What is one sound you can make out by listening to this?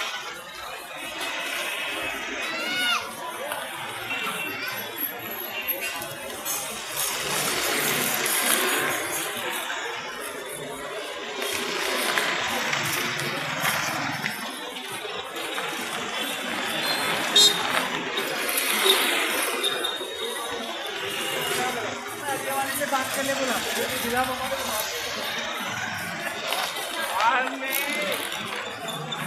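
A busy crowd chatters outdoors.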